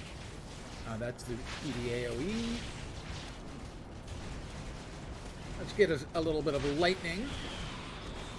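An older man speaks calmly into a microphone, close by.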